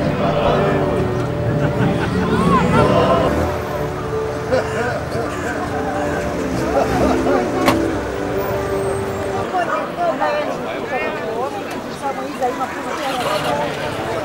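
A crowd of men and women chatter outdoors, close by.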